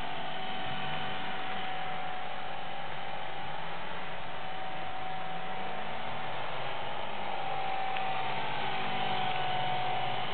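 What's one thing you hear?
A small model helicopter whines steadily overhead, its pitch shifting as it moves.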